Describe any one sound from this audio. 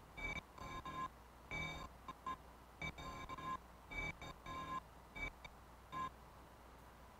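Bright electronic synth notes play in short bursts.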